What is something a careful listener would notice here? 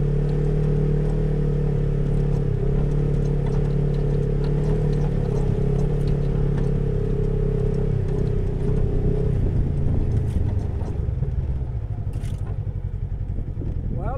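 An off-road vehicle engine drones steadily close by, then eases off.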